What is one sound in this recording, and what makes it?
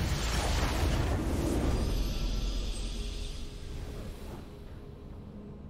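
A booming game victory fanfare swells and then fades away.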